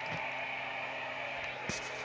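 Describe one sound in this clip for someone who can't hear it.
A crowd cheers through a television speaker.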